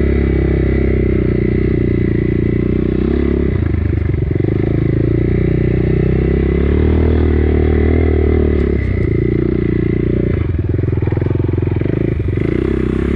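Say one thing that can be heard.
A dirt bike engine drones loudly close by, its pitch rising and falling with the throttle.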